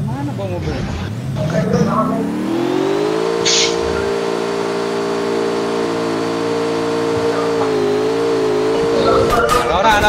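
A vehicle engine revs up and hums steadily.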